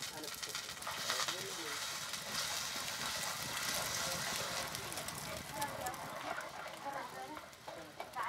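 Batter sizzles as it is poured onto a hot griddle.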